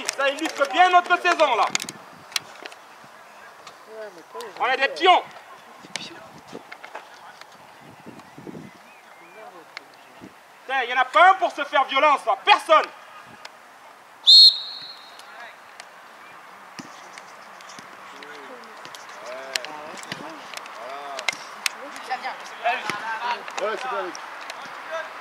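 Young players shout to each other outdoors on an open field.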